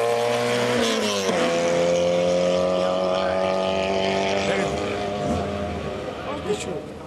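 A rally car engine roars at high revs, shifting gear as it speeds away.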